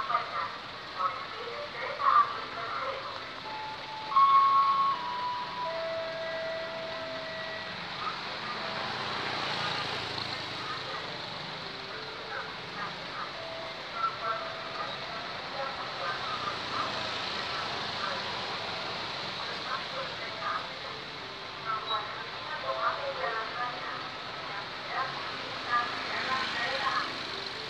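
Traffic hums steadily along a road outdoors.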